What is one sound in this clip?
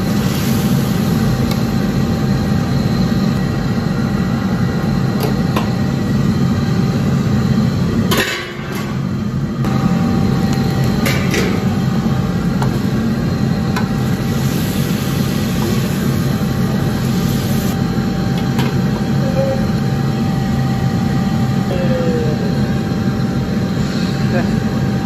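A gas burner roars steadily.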